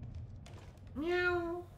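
A cat meows loudly.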